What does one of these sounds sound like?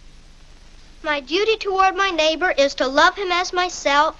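A young child speaks eagerly nearby.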